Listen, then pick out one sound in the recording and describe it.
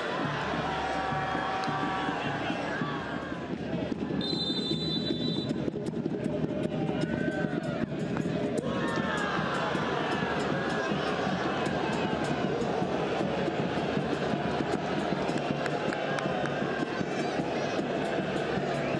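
A large crowd cheers and roars loudly outdoors.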